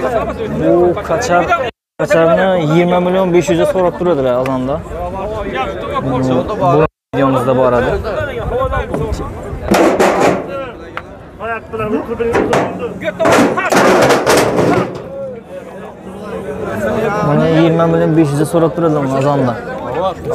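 A crowd of men chatters outdoors.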